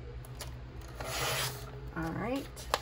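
A paper trimmer blade slices through a sheet of paper.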